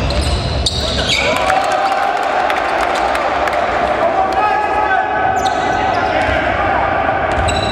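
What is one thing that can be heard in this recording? Shoes pound on a wooden court as players run in a large echoing hall.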